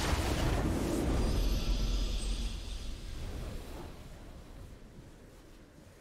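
A triumphant game fanfare swells and fades.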